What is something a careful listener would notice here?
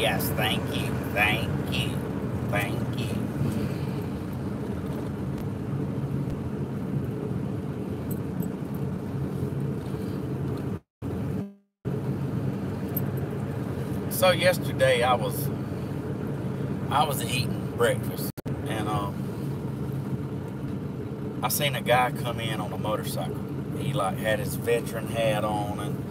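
A car engine hums steadily from inside the vehicle.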